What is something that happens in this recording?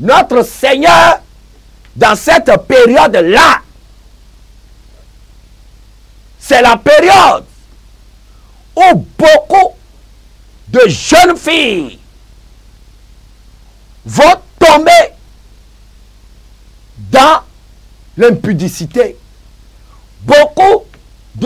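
A man preaches loudly and passionately into a microphone, in bursts with pauses between.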